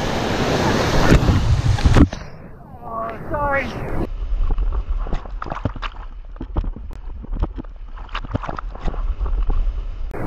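Water splashes hard over a raft.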